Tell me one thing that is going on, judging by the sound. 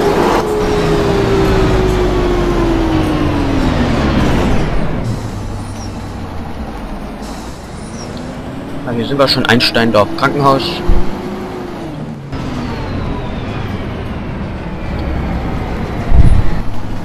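A bus engine hums, dropping in pitch as it slows and rising again as it pulls away.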